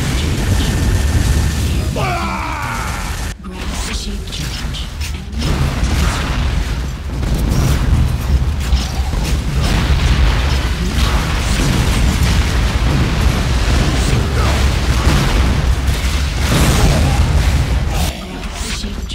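Gunfire and rocket blasts boom repeatedly.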